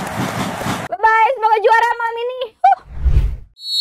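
A young woman speaks with animation, close to a microphone.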